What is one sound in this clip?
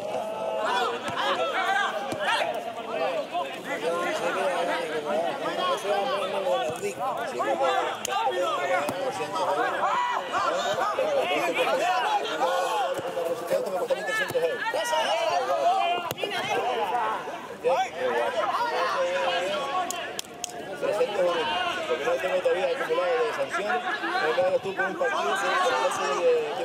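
Men shout across an outdoor sports field.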